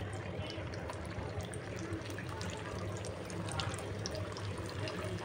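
Hot oil sizzles and crackles steadily in a pan.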